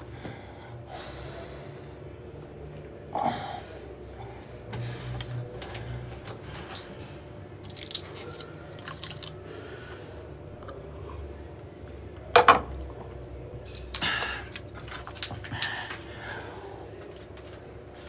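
A man scrubs his teeth with a toothbrush.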